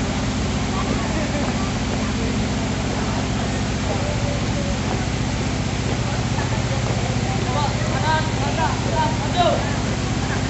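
A group of marchers stamps their feet in step on a road.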